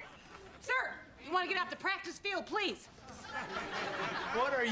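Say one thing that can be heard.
A woman speaks loudly.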